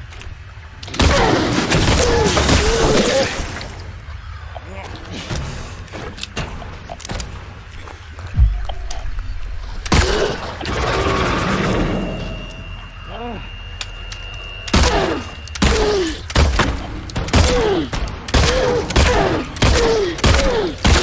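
A pistol fires sharp, loud shots in bursts.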